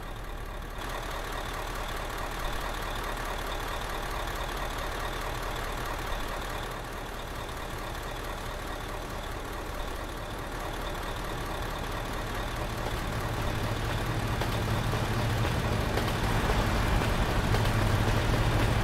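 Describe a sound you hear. A bus engine hums steadily and grows louder.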